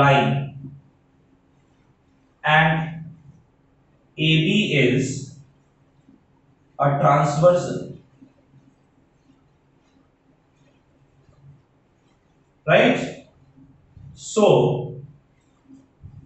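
A man speaks calmly and slowly in short phrases, close by, with pauses between them.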